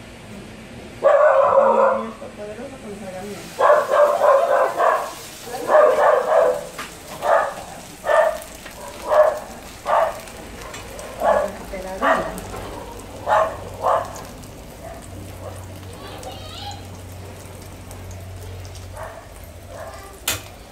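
Oil sizzles softly in a frying pan.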